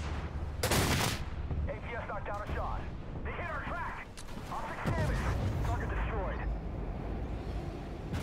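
Tank cannons fire with loud booming blasts.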